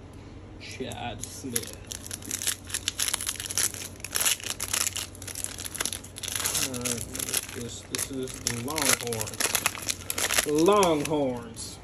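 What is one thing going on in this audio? A foil wrapper crinkles and tears as it is pulled open.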